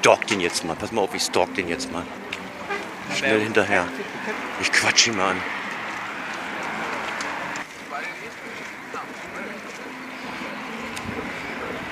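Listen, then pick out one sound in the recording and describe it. Footsteps scuff along a paved sidewalk outdoors.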